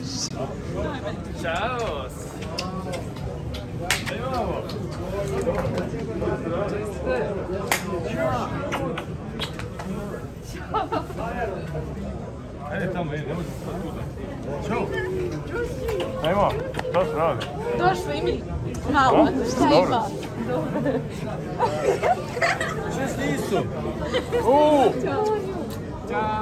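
A crowd of men and women chatters nearby in a busy echoing hall.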